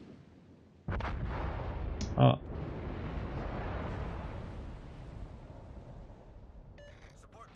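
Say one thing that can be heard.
A large explosion rumbles and roars, then slowly fades.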